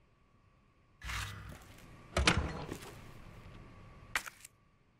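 A heavy metal lid thuds shut with a clang.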